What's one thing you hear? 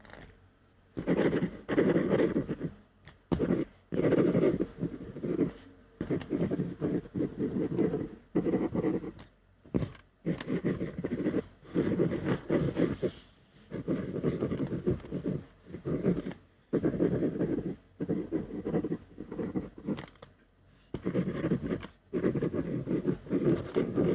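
A pen scratches across paper in short bursts.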